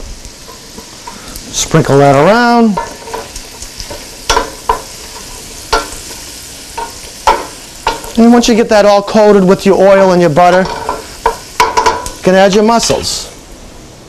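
Food sizzles softly in a pan.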